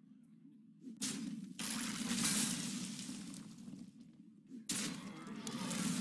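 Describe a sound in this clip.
A heavy blow lands with a crunching impact.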